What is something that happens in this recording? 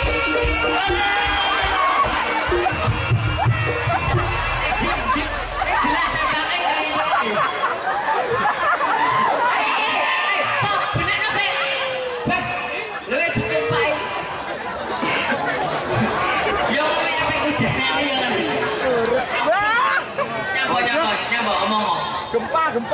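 Men and women in a crowd shout and cheer with excitement.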